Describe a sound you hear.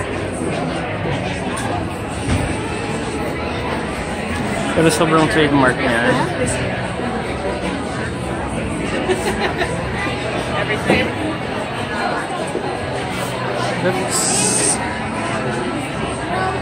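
A crowd of men and women chatters all around indoors.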